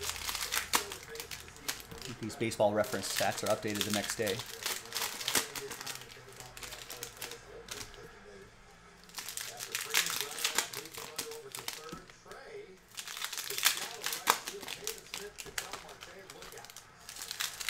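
Cardboard cards shuffle and rustle as they are handled.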